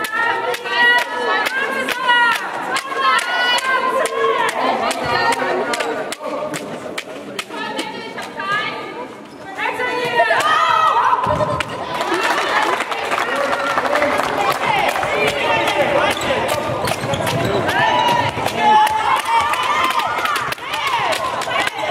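A ball bounces on a hard floor in a large echoing hall.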